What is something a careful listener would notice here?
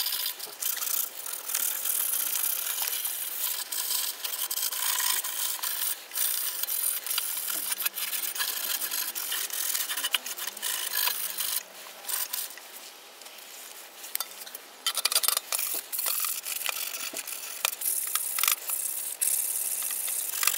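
A scrubbing pad scrubs a metal grate with a harsh scraping.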